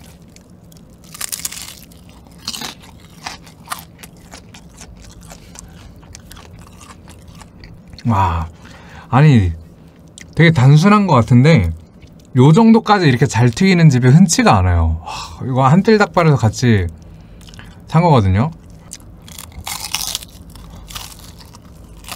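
A man bites and chews crunchy fried chicken close to a microphone.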